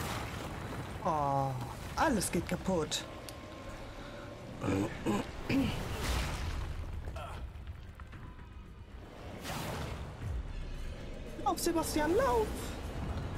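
A young woman talks and exclaims with animation into a close microphone.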